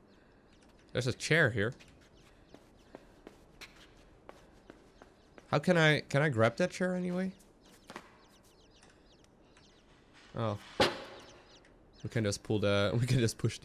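A young man speaks into a microphone in short bursts.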